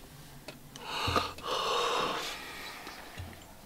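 A young man sighs loudly.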